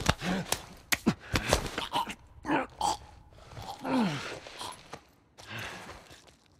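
Heavy blows thud during a fight.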